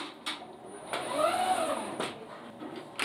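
A robotic arm whirs as it moves.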